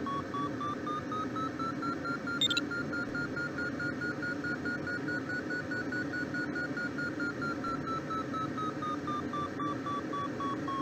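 A glider's variometer beeps quickly, its pitch slowly rising and then falling.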